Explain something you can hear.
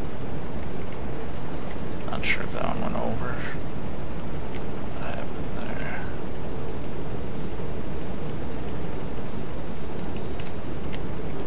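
Sea waves wash and churn steadily.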